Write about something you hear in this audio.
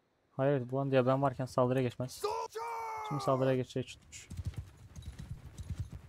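An army of soldiers tramps and charges across open ground.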